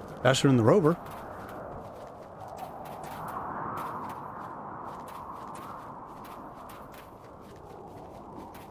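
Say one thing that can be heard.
Footsteps crunch quickly over sand and gravel.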